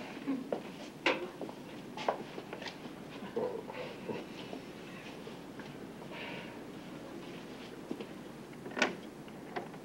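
Footsteps and knocks sound on a hard floor.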